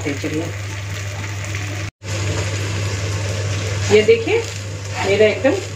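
Batter sizzles on a hot pan.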